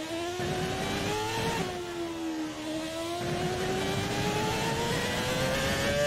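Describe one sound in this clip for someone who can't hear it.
A racing car engine whines loudly, its pitch rising through the gears and dropping as it shifts down.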